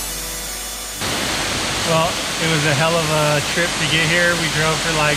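A waterfall rushes and splashes steadily.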